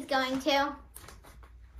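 A young girl sings a short high note.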